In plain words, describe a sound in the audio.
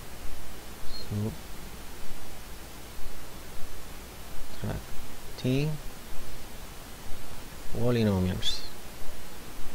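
A man speaks calmly into a microphone, in short phrases.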